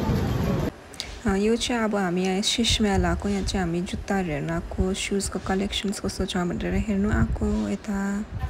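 A middle-aged woman speaks close by in a quieter room.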